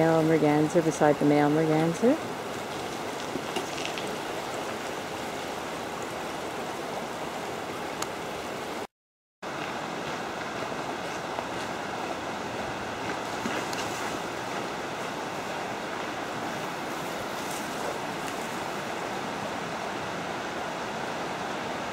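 River water flows and ripples steadily close by.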